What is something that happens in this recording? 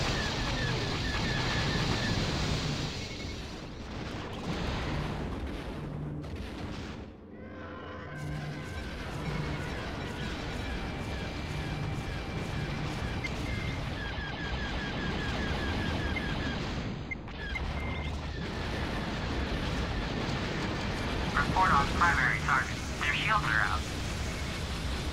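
A spacecraft engine hums steadily.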